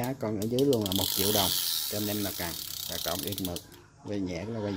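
A fishing reel's spool spins with a fast whirring rattle.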